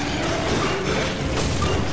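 A monster snarls as it grapples.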